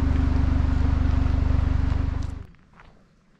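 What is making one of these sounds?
Wind blows hard against the microphone outdoors.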